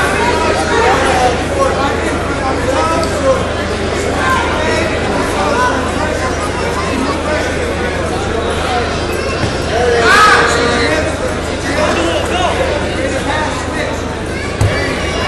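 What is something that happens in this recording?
Men in the crowd shout instructions.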